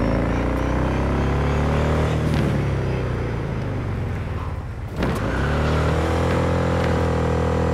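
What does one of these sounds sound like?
A motorcycle engine roars steadily, dropping in pitch and then revving up again.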